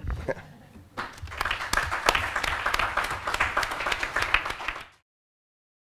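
People applaud.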